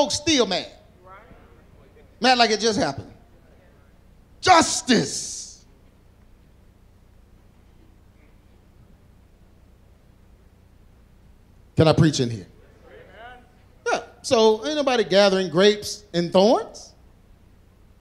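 A middle-aged man speaks with animation through a microphone, in bursts with pauses, in a large echoing hall.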